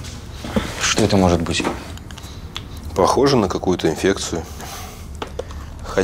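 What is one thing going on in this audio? A young man answers quietly.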